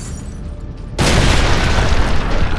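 A loud explosion bursts suddenly.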